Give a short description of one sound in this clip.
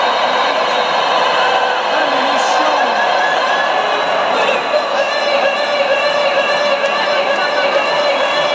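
Loud music plays through big loudspeakers.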